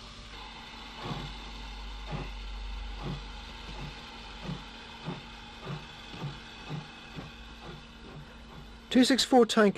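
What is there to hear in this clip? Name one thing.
A steam locomotive chuffs in a steady rhythm.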